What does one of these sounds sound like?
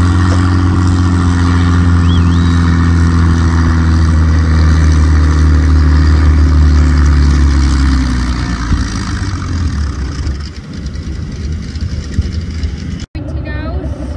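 A farm tractor engine roars at full throttle while pulling a weight sled, then eases off.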